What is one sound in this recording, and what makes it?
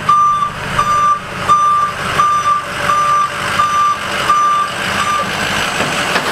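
A truck's reverse alarm beeps steadily.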